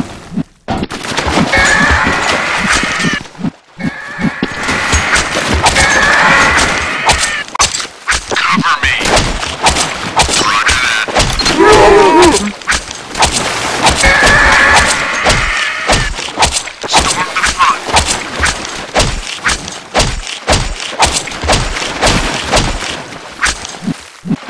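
A knife slashes and clanks repeatedly.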